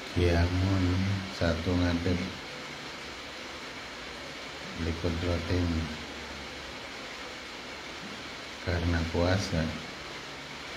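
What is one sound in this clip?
A man recites in a slow, chanting voice close by, pausing between phrases.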